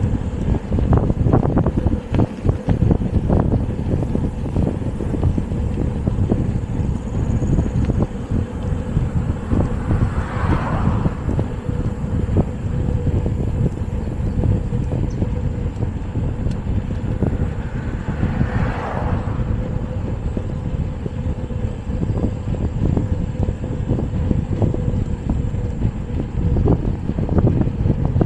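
Wind buffets loudly and steadily throughout.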